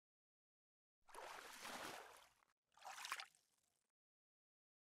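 Water splashes as a fish is lifted out.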